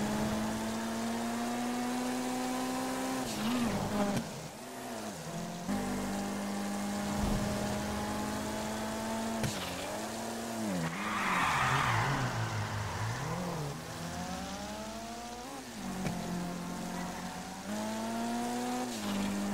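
A car engine roars at high revs, dropping and climbing again with each gear change.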